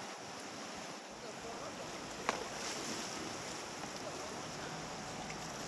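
Paddles splash in the water.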